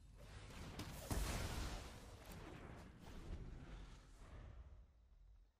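A magical burst whooshes and booms.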